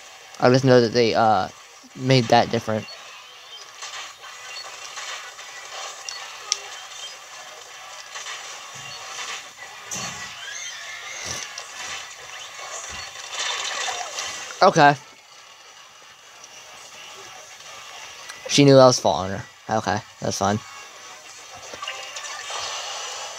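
A handheld game console plays fast game sound effects through its small speaker.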